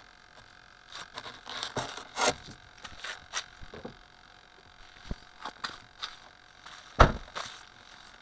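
A small toy car knocks and clatters as it tumbles over.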